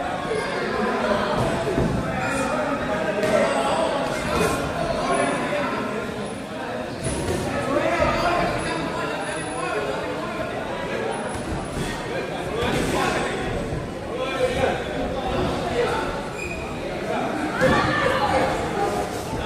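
People chatter in a large echoing hall.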